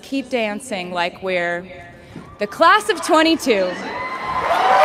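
A young woman speaks through a microphone to a large outdoor crowd.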